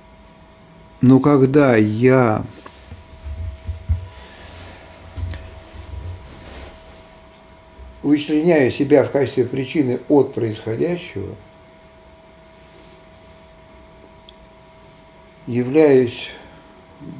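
An elderly man speaks calmly into a nearby microphone, in bursts with pauses.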